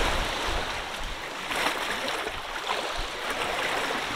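Waves splash against the shore.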